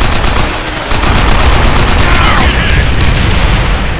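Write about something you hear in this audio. Large explosions boom and rumble.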